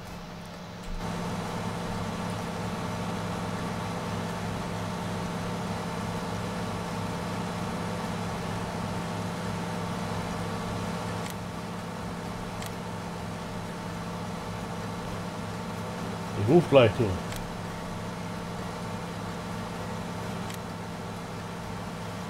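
A heavy harvester engine drones steadily.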